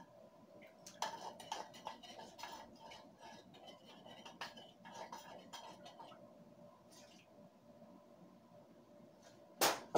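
A metal pot clinks and clatters.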